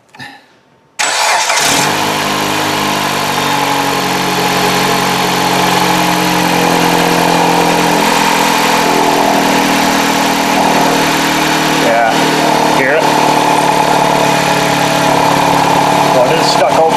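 An engine idles with a steady hum.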